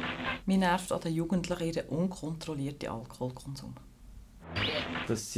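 A middle-aged woman speaks calmly and close up.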